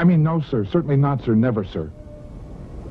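A middle-aged man speaks firmly and close by.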